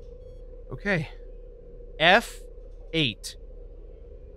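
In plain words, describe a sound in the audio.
A man calls out short words close to a microphone.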